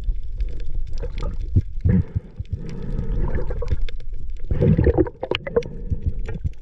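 Water bubbles and crackles in a muffled way underwater.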